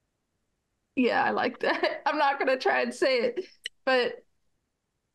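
A middle-aged woman laughs over an online call.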